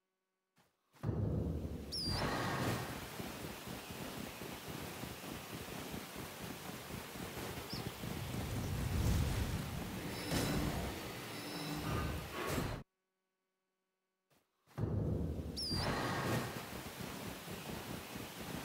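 Horse hooves gallop quickly over the ground.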